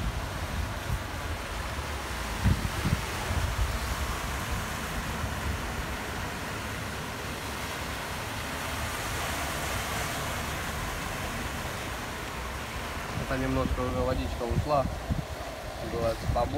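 A car drives slowly through deep floodwater, splashing.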